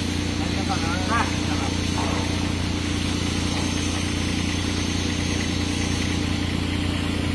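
A machine's engine hums steadily nearby.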